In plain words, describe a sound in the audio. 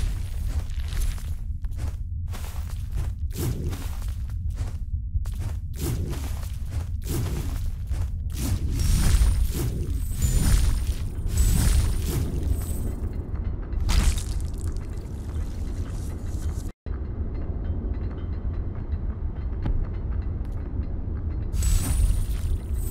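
Blades whoosh and strike in quick, sharp bursts.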